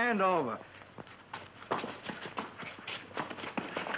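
Boys scuffle outdoors.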